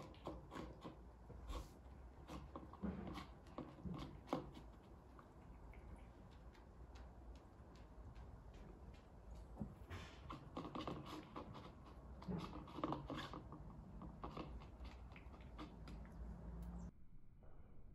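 A cat crunches and laps food from a bowl close by.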